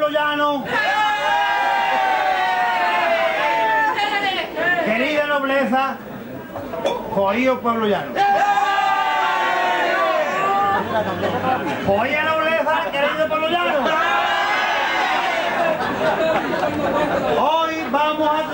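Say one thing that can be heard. A large crowd sings loudly together.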